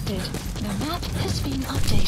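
Footsteps crunch quickly over dry, stony ground.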